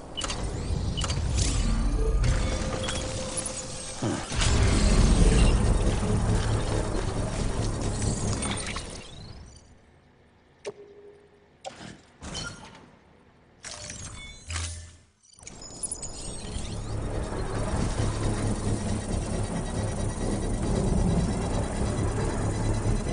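Wind blows steadily across open ground.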